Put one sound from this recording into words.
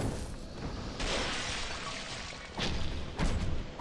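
A burst of fire whooshes and crackles.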